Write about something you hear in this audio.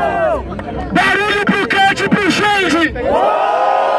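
A young man raps loudly and quickly nearby.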